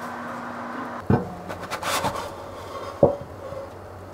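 A metal loaf pan knocks against a table.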